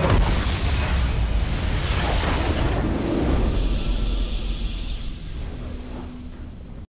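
Spell effects crackle and boom in a hectic fantasy battle.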